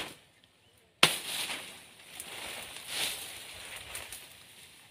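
Leaves and dry grass rustle as plants are pulled and handled.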